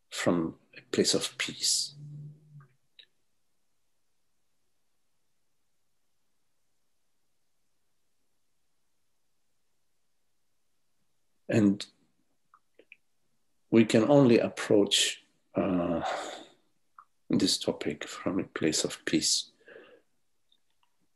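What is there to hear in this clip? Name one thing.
An older man speaks calmly over an online call, with long pauses.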